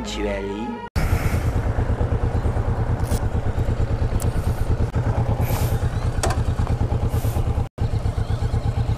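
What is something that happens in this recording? A motorcycle engine idles with a steady rapid putter close by.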